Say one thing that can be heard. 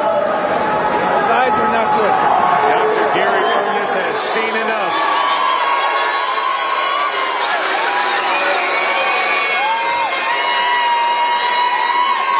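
A large crowd cheers and shouts loudly in an echoing arena.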